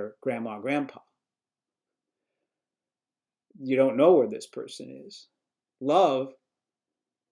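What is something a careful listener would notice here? An elderly man speaks calmly and close to a microphone, in short phrases with pauses.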